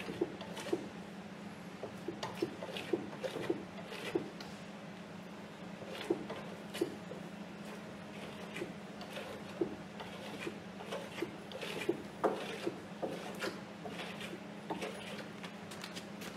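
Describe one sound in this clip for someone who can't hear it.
A brush scrapes and taps against a canvas.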